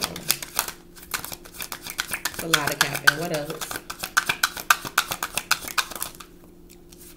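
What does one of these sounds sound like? Cards flick and riffle in a person's hands.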